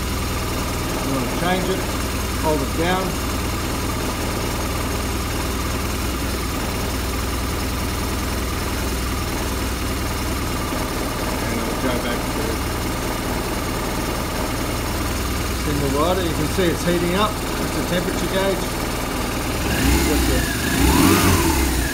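A motorcycle engine idles with a steady low rumble.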